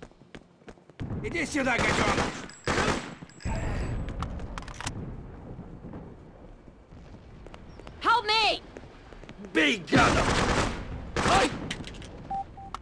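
Gunshots ring out in bursts, echoing in a hard corridor.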